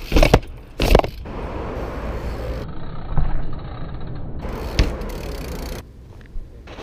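BMX bike tyres roll over concrete.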